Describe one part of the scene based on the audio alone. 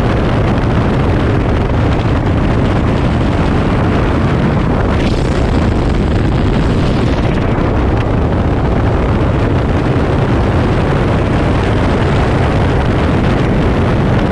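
A propeller plane's engine roars steadily up close.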